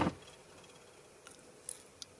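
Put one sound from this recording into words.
A glass jar clinks softly as a hand moves it.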